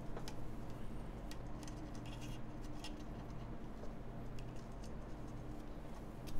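Keys click as fingers press on a keyboard.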